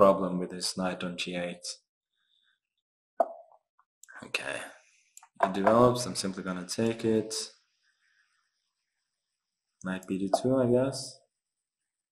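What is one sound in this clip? A young man talks calmly and close to a microphone, in short bursts with pauses.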